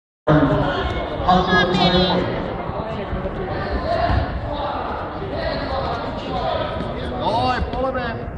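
Spectators shout encouragement in a large echoing hall.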